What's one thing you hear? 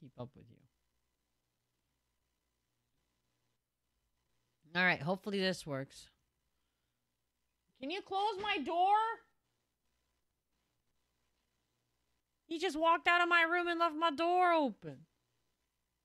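A young woman speaks with animation into a close microphone, in short bursts with pauses.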